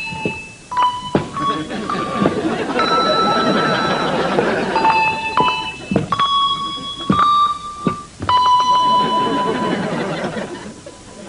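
Handbells ring out single notes one after another, playing a slow tune.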